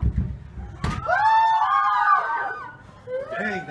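A teenage girl screams shrilly.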